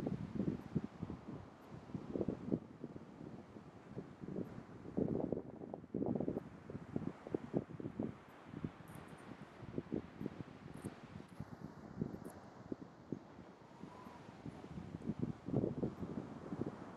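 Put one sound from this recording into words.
An elephant seal grunts and snorts close by.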